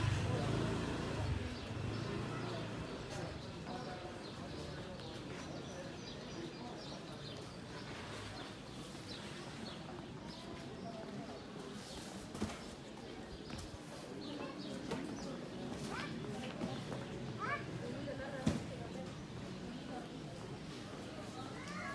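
Distant voices of passers-by murmur along a street.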